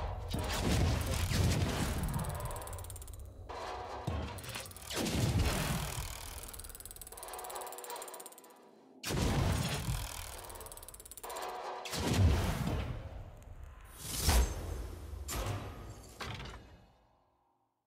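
A magical chest bursts open with a shimmering, swelling whoosh.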